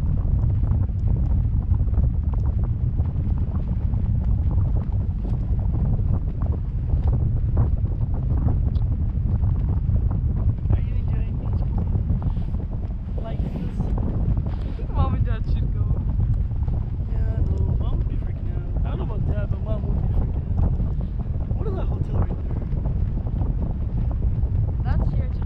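Wind rushes steadily over the microphone high in the open air.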